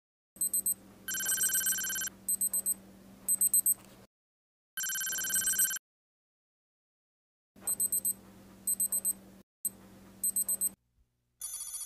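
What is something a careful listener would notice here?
An electronic wire tester beeps in short, high bursts.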